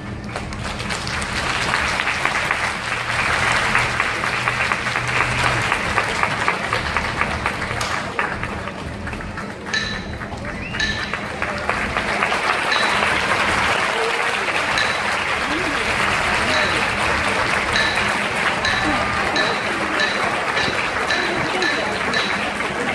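A large crowd applauds and cheers outdoors.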